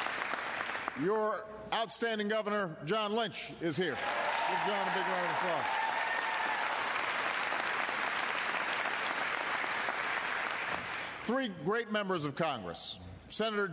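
A man speaks firmly into a microphone.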